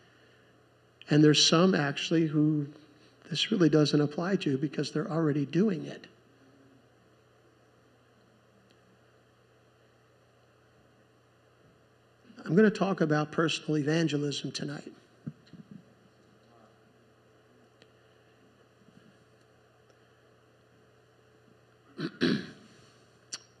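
A man speaks calmly through a microphone in a large room.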